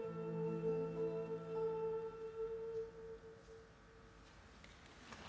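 A final chord from string instruments rings out and fades in a large echoing hall.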